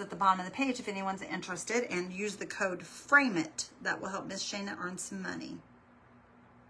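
A middle-aged woman talks calmly and closely.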